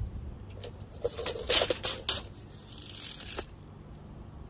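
A metal tape measure rattles as it is pulled out and snaps back.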